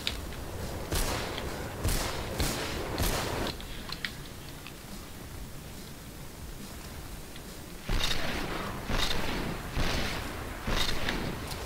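Gunshots crack loudly.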